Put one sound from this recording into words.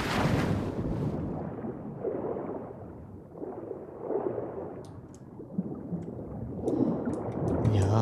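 Water gurgles and bubbles, muffled as if underwater.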